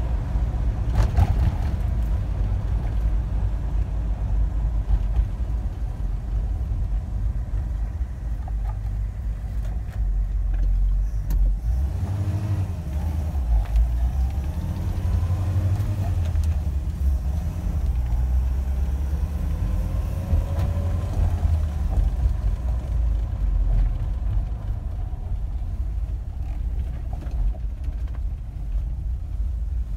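A car engine rumbles steadily from inside the cab while driving.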